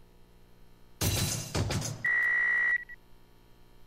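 An electronic beeping tone rings as a game score counts up.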